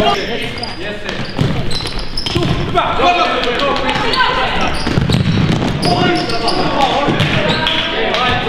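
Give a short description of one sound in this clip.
Young men shout to each other across the hall.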